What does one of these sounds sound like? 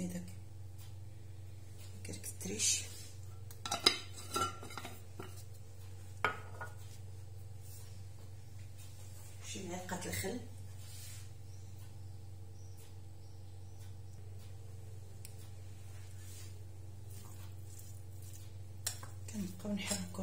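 A spoon scrapes and clinks against a ceramic bowl while food is stirred.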